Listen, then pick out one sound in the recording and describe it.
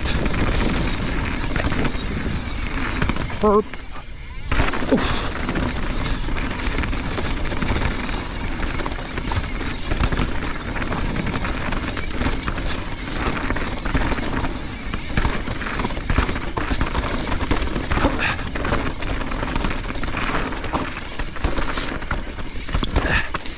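Bicycle tyres crunch and rattle over a rough, rocky dirt trail.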